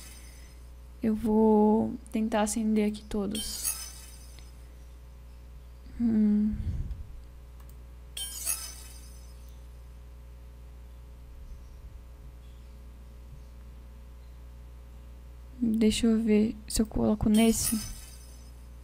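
A young woman talks into a close microphone with animation, in short bursts.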